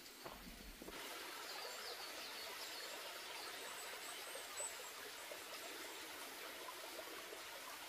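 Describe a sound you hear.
A shallow stream trickles gently over stones.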